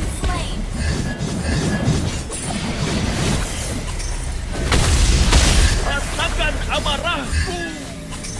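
Magic blasts and spell effects crackle and whoosh in quick bursts.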